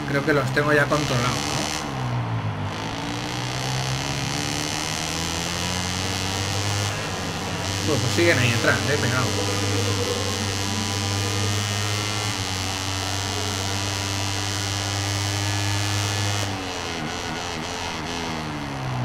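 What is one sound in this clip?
A motorcycle engine roars, rising in pitch as it speeds up and dropping as it slows.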